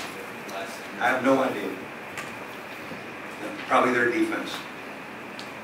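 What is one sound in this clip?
A man speaks calmly into a microphone in short bursts.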